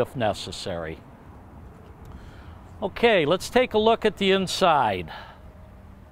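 A middle-aged man speaks calmly and clearly, close by.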